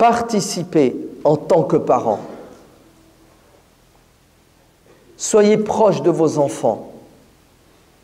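A middle-aged man speaks forcefully into a microphone, in short bursts with pauses.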